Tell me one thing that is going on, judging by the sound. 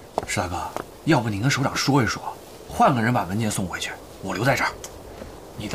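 A young man speaks earnestly up close.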